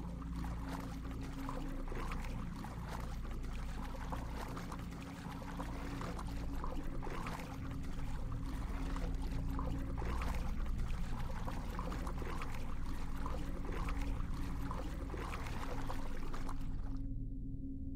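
Muffled underwater bubbling and rushing water surround a swimmer.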